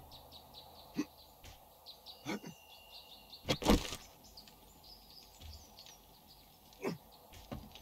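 Footsteps thud on a hard roof.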